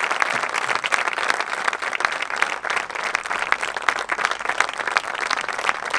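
An audience claps outdoors.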